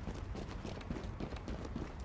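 Boots clang on metal stairs.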